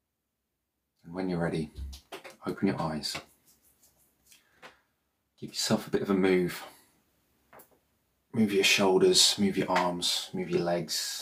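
A man speaks calmly and softly, close to a microphone, with pauses.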